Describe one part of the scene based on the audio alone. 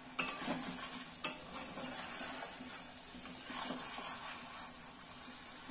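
A wooden spatula scrapes and knocks against a metal wok.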